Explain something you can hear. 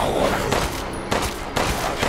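A revolver fires a loud shot.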